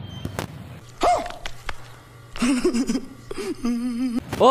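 A man exclaims loudly in surprise.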